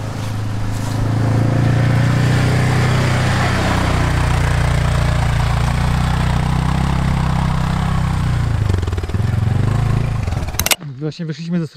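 A quad bike engine rumbles close by and drives off.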